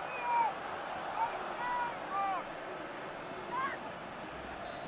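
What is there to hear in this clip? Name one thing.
A large crowd cheers and whistles in a stadium.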